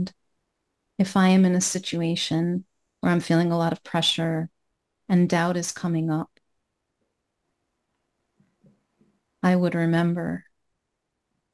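A woman speaks emotionally over an online call, in short bursts with pauses.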